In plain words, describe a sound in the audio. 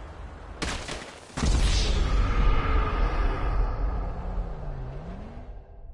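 A gunshot bangs sharply, followed by a booming roar.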